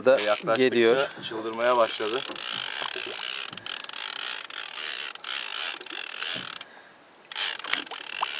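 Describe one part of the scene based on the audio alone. Water swishes and bubbles, heard from underwater.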